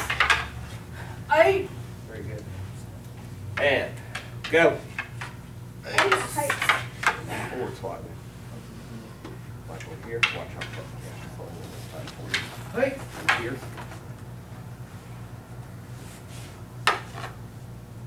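Wooden staffs clack sharply against each other.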